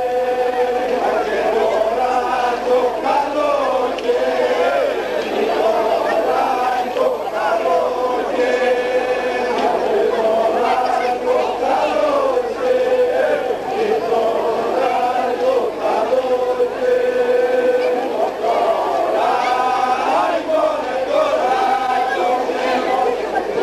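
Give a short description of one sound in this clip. A group of people sing together in chorus.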